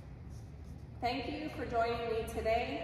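A young woman sings nearby.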